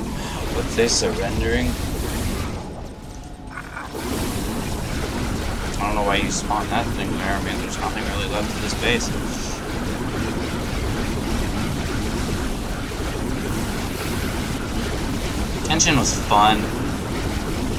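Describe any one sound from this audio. A teenage boy talks with animation close to a microphone.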